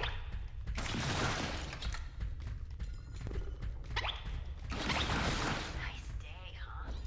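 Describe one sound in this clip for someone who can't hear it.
Blades slash and strike in quick bursts.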